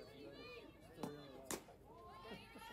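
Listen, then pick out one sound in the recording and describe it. A softball smacks into a catcher's mitt.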